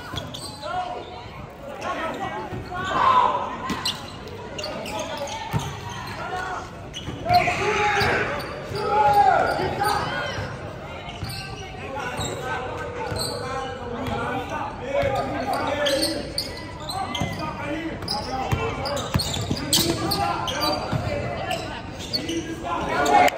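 Young men shout and call out to each other across an echoing gym.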